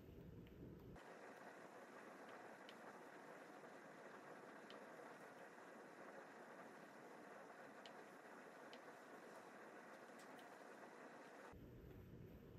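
A steam iron hisses softly as it glides over fabric.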